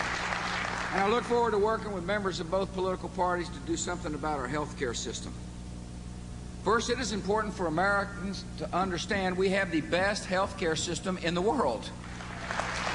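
A man speaks firmly into a microphone over loudspeakers.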